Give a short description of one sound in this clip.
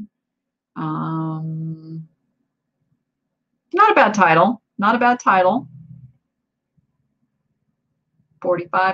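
A woman speaks calmly and closely into a microphone, with pauses.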